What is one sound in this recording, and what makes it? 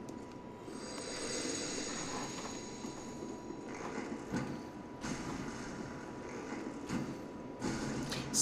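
Heavy chains clank and rattle as a huge creature lumbers forward.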